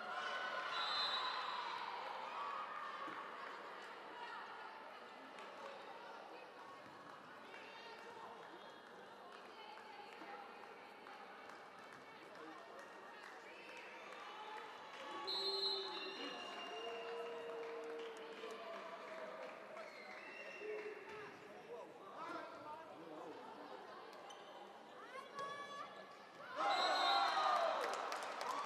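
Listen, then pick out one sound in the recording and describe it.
Young women players shout to each other on court.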